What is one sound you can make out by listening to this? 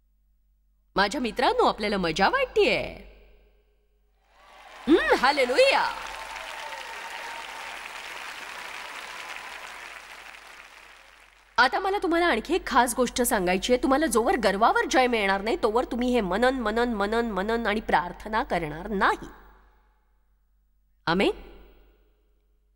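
A middle-aged woman speaks with animation in a large echoing hall.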